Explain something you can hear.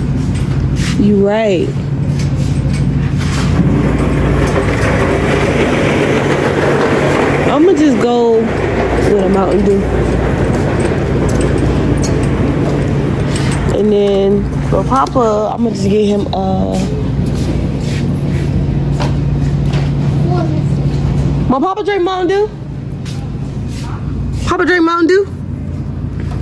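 A young girl talks nearby in a high voice.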